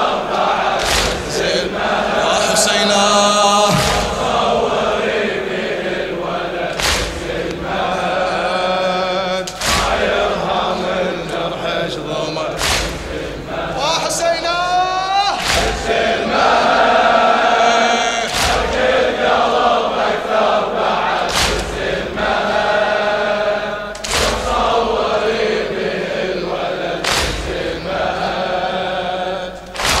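A crowd of men chants along in unison.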